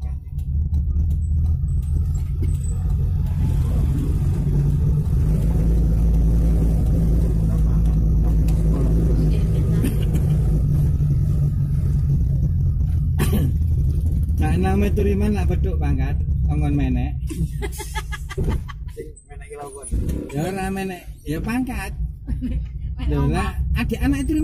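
A vehicle engine rumbles low and steady while driving.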